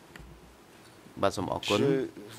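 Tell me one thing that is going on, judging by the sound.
Another man speaks into a microphone.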